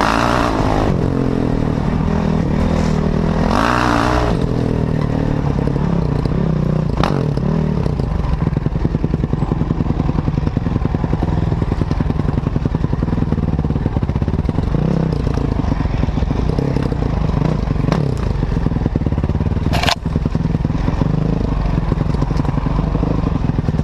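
Tyres crunch and bump over a rough dirt trail.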